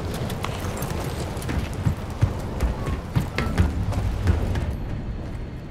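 Heavy footsteps clank on a metal deck.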